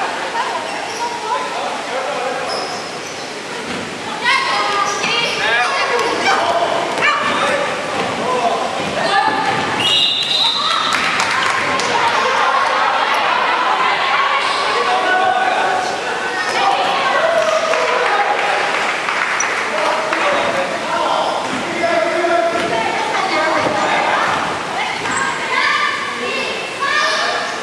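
Many young voices shout and call out throughout a large echoing hall.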